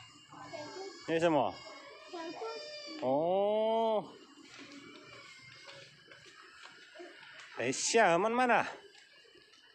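A young child squeals and calls out excitedly nearby.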